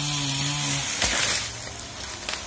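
A tree falls and crashes to the ground with a snapping of branches.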